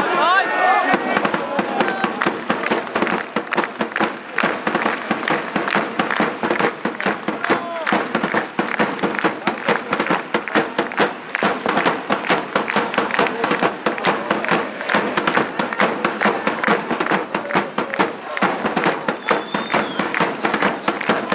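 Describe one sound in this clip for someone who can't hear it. Fans clap in rhythm.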